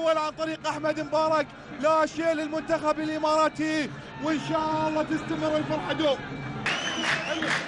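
A crowd chants and cheers in a stadium.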